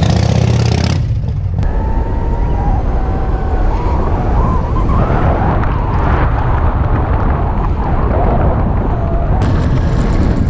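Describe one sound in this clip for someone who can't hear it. Wind rushes loudly past while riding along a road.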